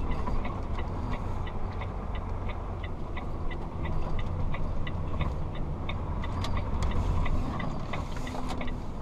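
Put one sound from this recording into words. A turn signal ticks in a quick, even rhythm.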